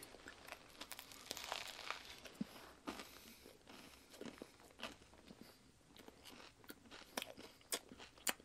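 A man bites into a bread roll and chews noisily up close.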